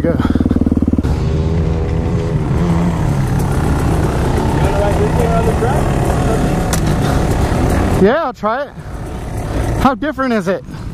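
Another dirt bike engine idles nearby.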